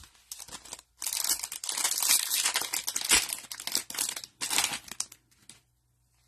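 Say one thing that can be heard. A foil wrapper crinkles and rustles as it is torn open.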